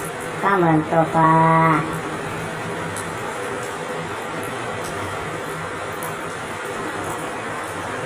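A cat chews and laps at food up close.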